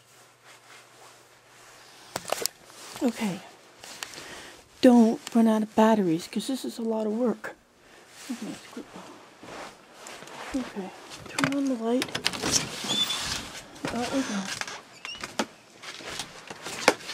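Clothing rustles and brushes close by.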